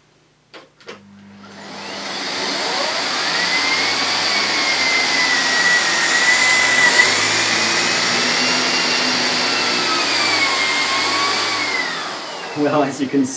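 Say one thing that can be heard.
A vacuum cleaner runs with a loud, steady whine.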